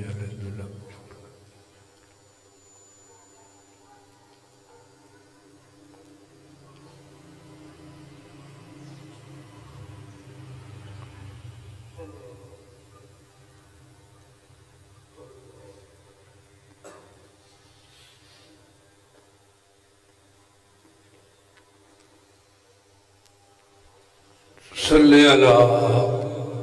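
A man recites a prayer aloud through a loudspeaker in an echoing hall.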